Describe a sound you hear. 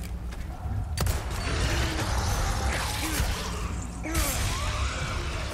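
A monster snarls and growls up close.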